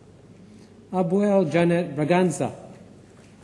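A man reads out over a microphone.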